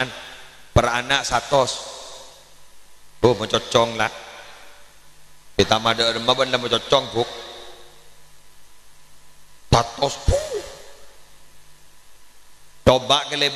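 A man speaks with animation in short bursts through a microphone and loudspeakers, with an echo trailing after each phrase.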